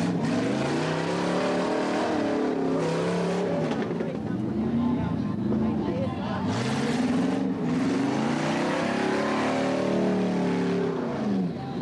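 A car engine revs hard, rising and falling in pitch.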